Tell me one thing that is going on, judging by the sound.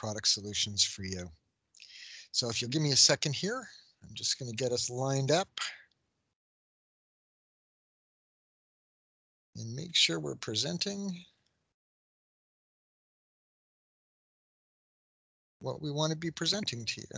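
A middle-aged man speaks calmly into a headset microphone, with pauses.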